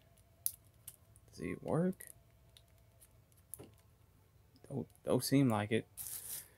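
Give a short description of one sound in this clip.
Plastic toy limbs click and rattle as they are moved by hand.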